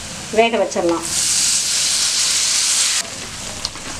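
Water pours into a hot pan with a loud hiss.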